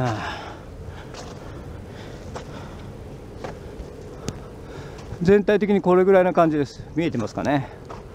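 Footsteps crunch softly on sandy ground.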